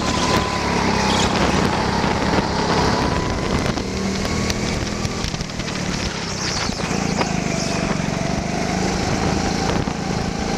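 A go-kart engine buzzes loudly close by, rising and falling as it speeds through turns.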